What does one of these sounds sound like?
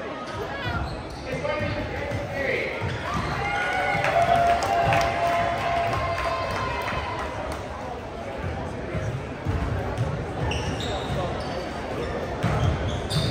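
Basketballs bounce on a hardwood floor, echoing in a large hall.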